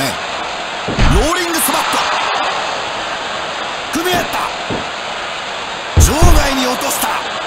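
A body slams onto a wrestling ring mat with a heavy thud.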